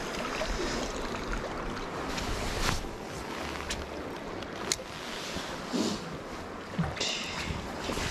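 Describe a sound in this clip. Wind blows outdoors by the sea.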